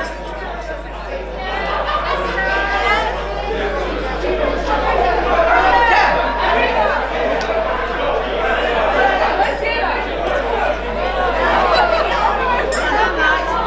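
A crowd of men and women chatters in the background.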